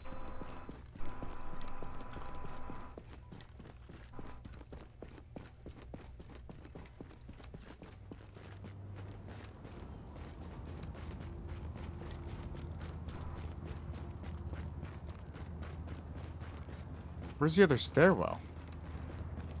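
Footsteps tread steadily on hard ground and crunch on snow.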